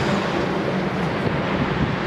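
A heavy truck rumbles past on a road.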